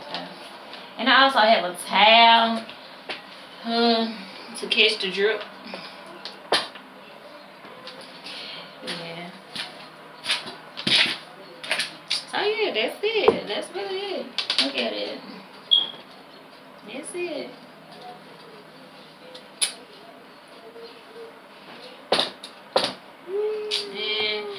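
A young woman talks close by, calmly and casually.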